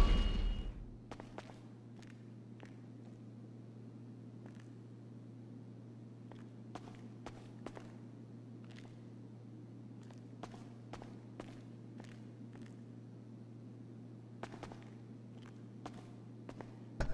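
Footsteps tap softly on a hard floor.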